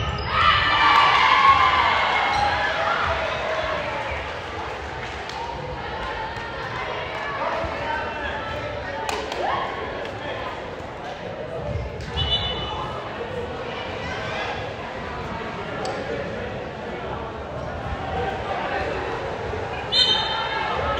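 A crowd cheers loudly in an echoing gym and then settles into a murmur.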